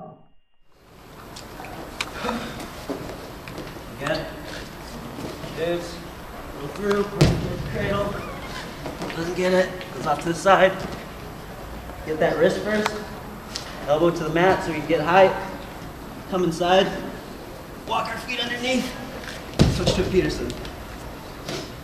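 A man explains calmly and clearly to a group, in an echoing hall.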